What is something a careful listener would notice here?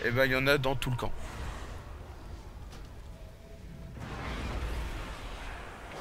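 A magic spell whooshes and hums.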